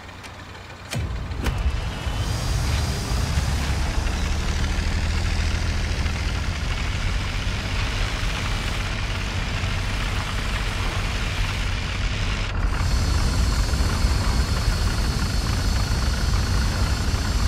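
A tank engine rumbles and roars steadily as the tank drives.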